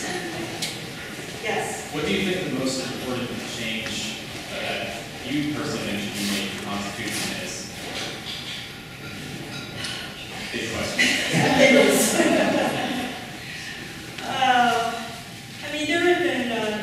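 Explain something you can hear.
A woman speaks steadily into a microphone in a large echoing room.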